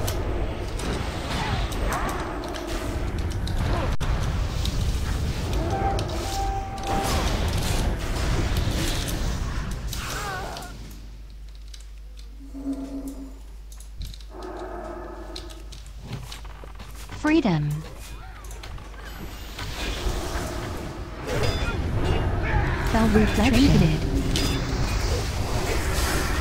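Game spell effects whoosh, crackle and clash in a fast fight.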